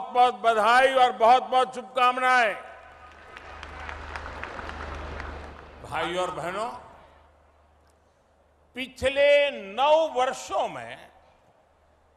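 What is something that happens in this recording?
An elderly man speaks forcefully through a loudspeaker.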